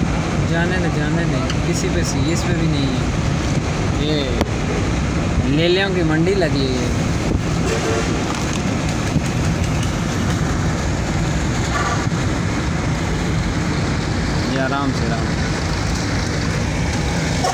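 A car rumbles steadily while driving along a road.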